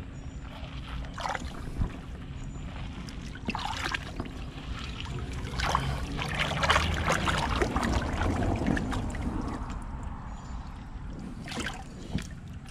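Shallow water gurgles and splashes over stones.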